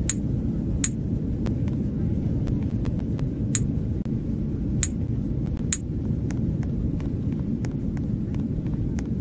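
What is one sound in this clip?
Short, sharp clicks sound every second or so.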